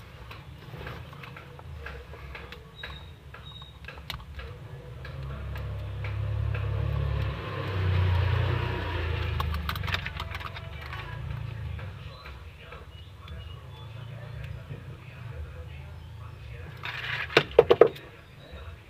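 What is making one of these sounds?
A screwdriver tip taps and scrapes against plastic fuses.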